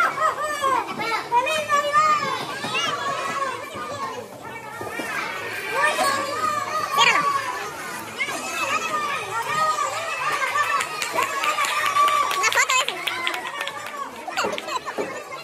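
A boy talks and laughs close to the microphone.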